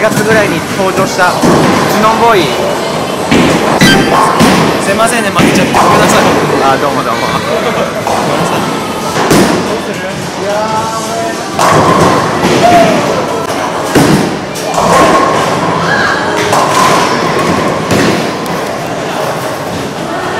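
Background chatter and clatter echo in a large hall.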